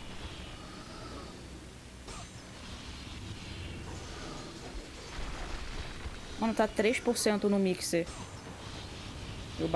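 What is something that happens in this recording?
Game sound effects whoosh and clash during a fight.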